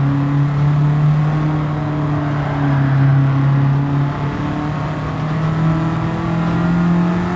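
A racing car engine drones steadily, dropping in pitch briefly and then slowly rising again.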